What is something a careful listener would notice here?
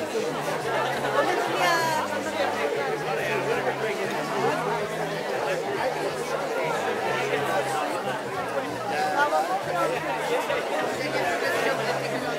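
A crowd of men and women chatters outdoors close by.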